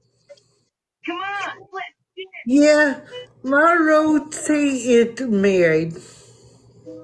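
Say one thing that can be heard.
An older woman speaks with animation over an online call.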